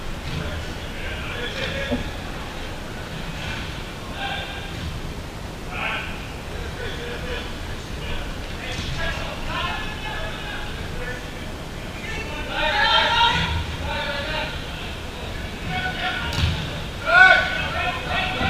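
Men call out to each other across a large echoing indoor hall.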